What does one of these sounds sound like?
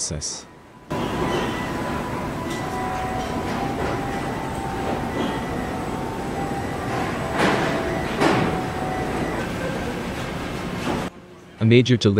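Factory machinery hums and clatters steadily.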